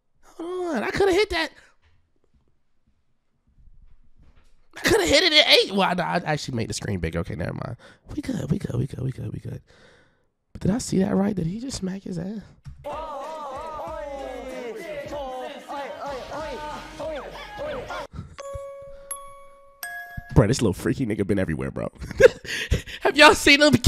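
A young man talks and laughs loudly into a close microphone.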